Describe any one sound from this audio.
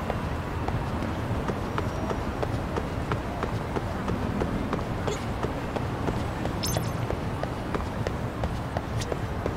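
Footsteps run quickly and evenly on hard ground.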